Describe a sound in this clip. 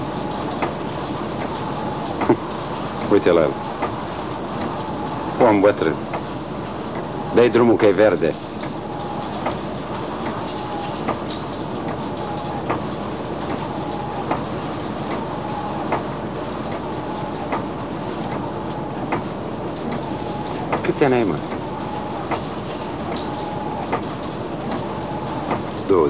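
Rain patters steadily against a window.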